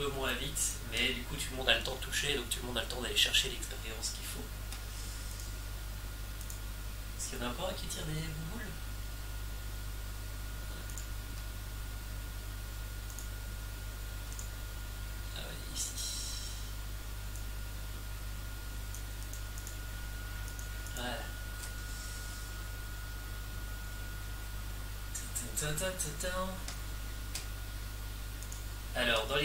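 Keyboard keys click rapidly.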